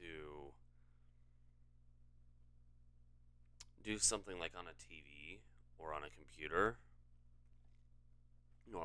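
A young man speaks calmly and close into a microphone, in short bursts.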